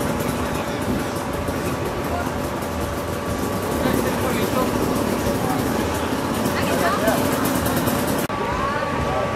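A crowd of men and women chatters outdoors.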